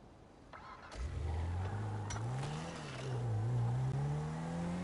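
A car engine starts and revs up and down.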